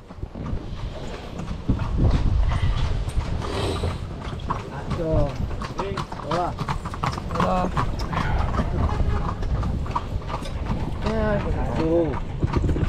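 Carriage wheels rumble over a paved road.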